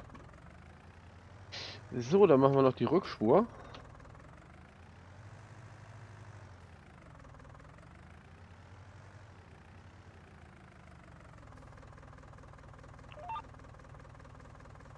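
A tractor engine hums steadily as it drives along.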